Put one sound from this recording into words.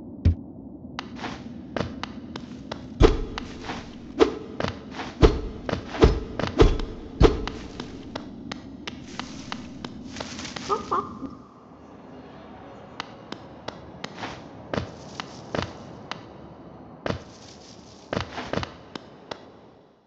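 Small footsteps patter quickly on a hard floor.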